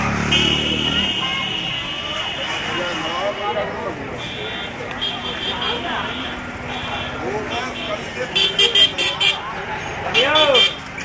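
Many people talk and call out around a busy outdoor street.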